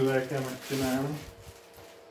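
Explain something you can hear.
A plastic wrapping crinkles.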